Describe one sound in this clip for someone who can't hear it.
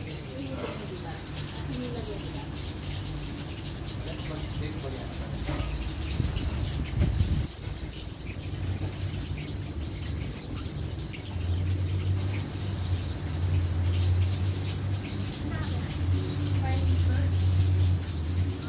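Men talk quietly in the distance.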